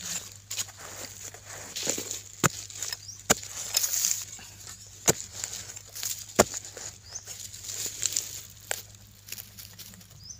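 Loose dirt and clods crumble and fall.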